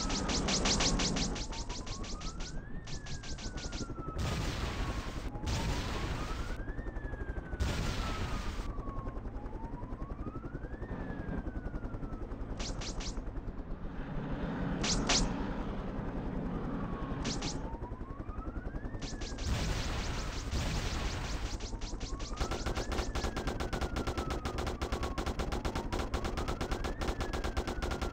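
A helicopter's rotor chops steadily overhead.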